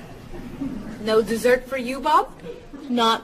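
A second young woman asks a question with mild surprise.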